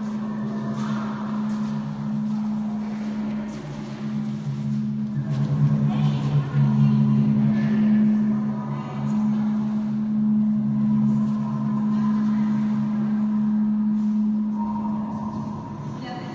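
A low steady drone plays from a loudspeaker.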